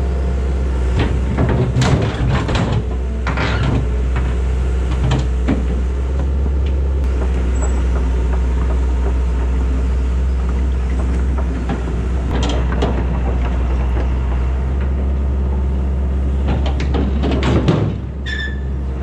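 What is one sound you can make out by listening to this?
Heavy metal scrapes and clanks as an excavator lifts a rusted steel box.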